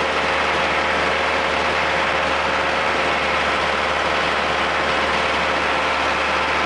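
A vehicle engine drones steadily while driving.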